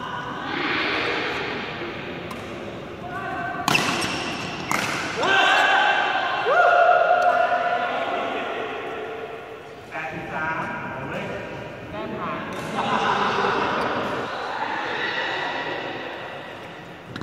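Young men call out and talk to each other.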